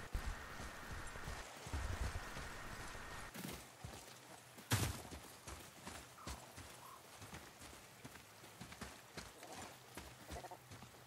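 Heavy footsteps thud and crunch over the ground at a brisk pace.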